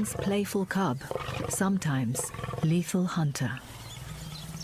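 A lion snarls and growls up close.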